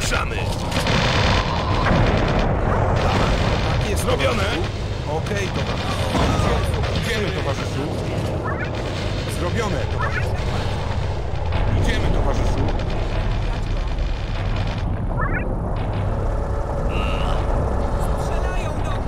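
Rapid gunfire rattles in a battle.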